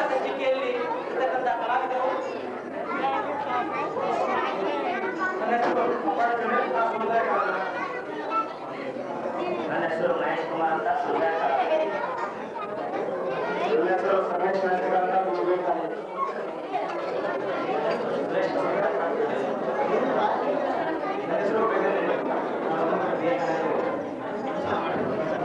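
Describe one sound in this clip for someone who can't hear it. A young man speaks into a microphone over a loudspeaker.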